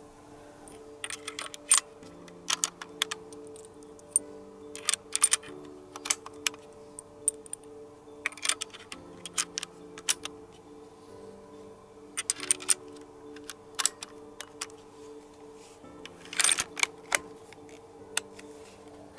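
Metal cartridges click into a rifle magazine.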